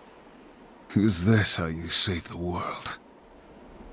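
A man speaks in a low, angry voice.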